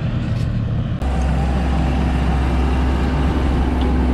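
A loader's diesel engine rumbles steadily close by.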